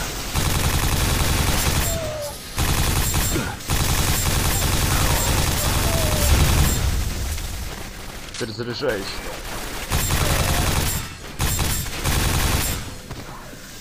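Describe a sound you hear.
A rapid-fire gun shoots in fast, loud bursts.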